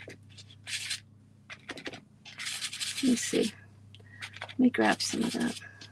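A stiff brush dabs and scrubs paint.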